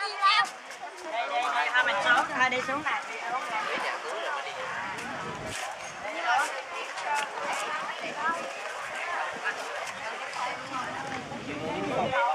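Young children shout and laugh while playing close by.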